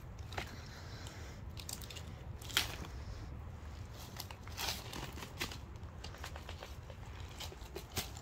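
Dry leaves rustle and crackle under a hand.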